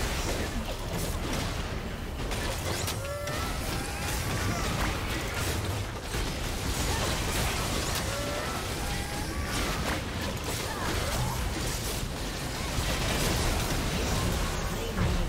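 Video game spells and attacks crackle and clash in a busy battle.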